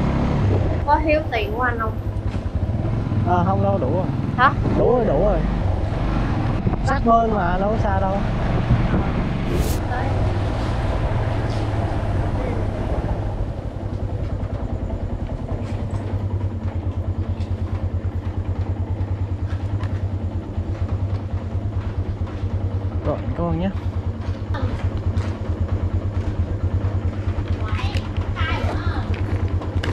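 A motorbike engine hums steadily, throbbing evenly at idle.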